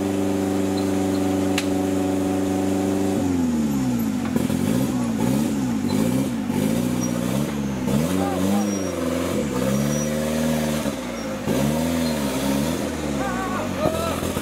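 An off-road engine idles steadily, then revs up and down hard.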